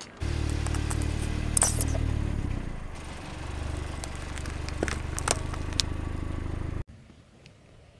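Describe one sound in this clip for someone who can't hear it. Plastic cups crack and squish under a tyre.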